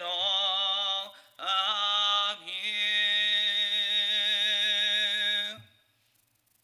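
A man sings a hymn through a microphone.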